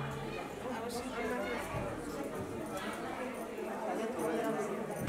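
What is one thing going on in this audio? Several women chatter together nearby.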